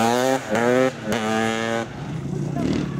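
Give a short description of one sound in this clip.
A motorcycle engine roars and rises in pitch as it speeds up.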